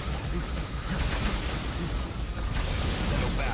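Lightning crackles sharply.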